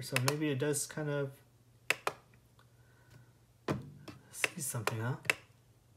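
A plastic button clicks under a finger.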